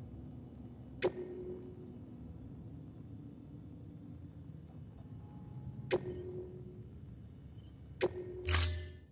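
Short electronic menu clicks sound now and then, each with a brief ringing tone.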